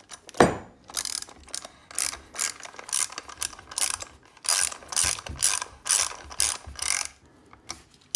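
A ratchet wrench clicks rapidly as it turns a bolt.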